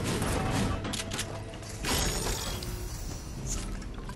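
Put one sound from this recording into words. A chest creaks open with a shimmering chime.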